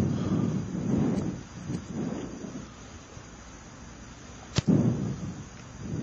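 A man kicks a football with a dull thump.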